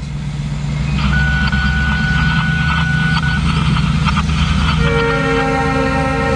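A railroad crossing bell rings steadily.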